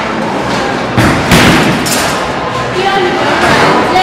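A bowling ball rolls down a wooden lane.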